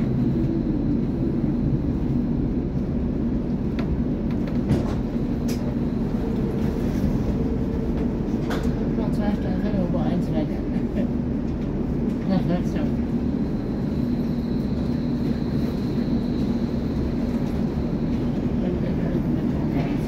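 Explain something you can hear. A large covered hall hums with a steady, echoing low rumble.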